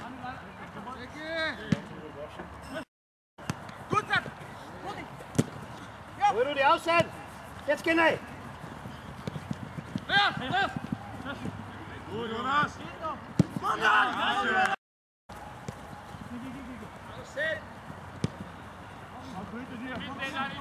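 Young men shout across an open playing field.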